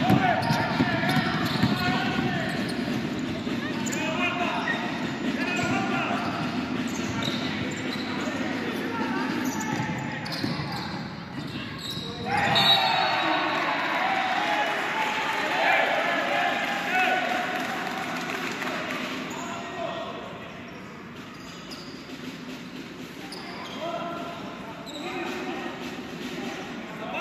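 Players call out to one another from across the court.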